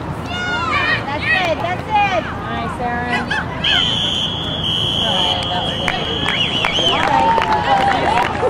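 Young men shout and call to each other in the distance.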